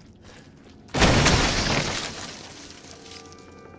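A pistol fires a single loud shot that echoes and fades.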